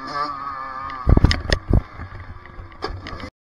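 A dirt bike crashes with loud thuds and scrapes.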